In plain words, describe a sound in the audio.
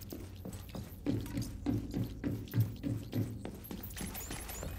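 Footsteps thud on metal stairs.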